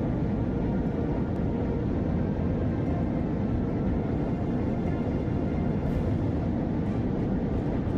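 Rocket engines roar with a steady, deep rumble.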